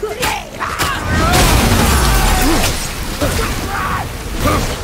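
Blows and impacts thud during a fight.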